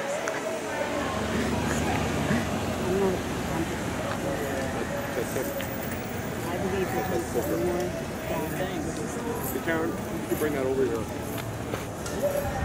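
A car engine rumbles as the car drives slowly past.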